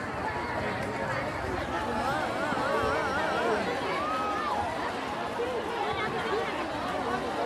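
Men and women chatter loudly in a dense crowd nearby.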